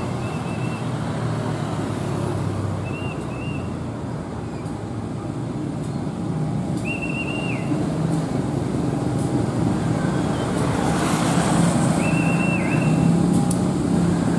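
A motorcycle engine hums past.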